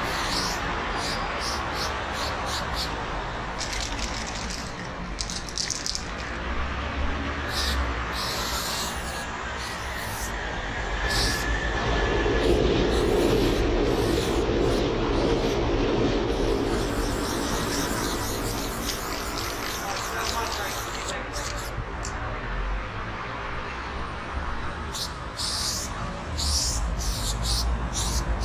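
A spray can hisses in short and long bursts.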